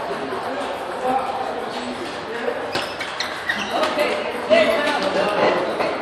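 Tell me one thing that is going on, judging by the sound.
A ping pong ball clicks back and forth between paddles and the table.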